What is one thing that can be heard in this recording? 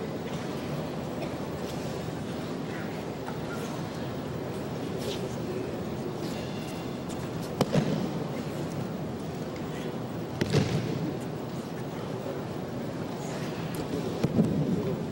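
Feet shuffle and slide on a mat.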